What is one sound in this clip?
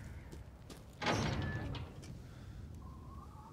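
A locked iron gate rattles as it is tugged.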